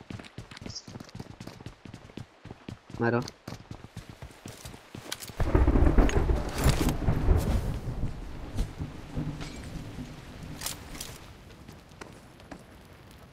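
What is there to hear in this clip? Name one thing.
Footsteps thud on wooden floors and dirt.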